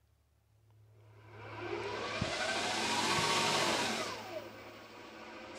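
A small engine runs with a whirring hum, rising and then easing off.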